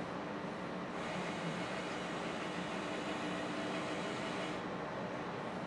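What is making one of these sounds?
A small machine whirs briefly as a turntable spins.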